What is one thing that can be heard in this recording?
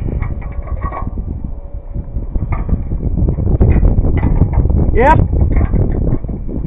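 Metal tools clink and rattle against a steel mast.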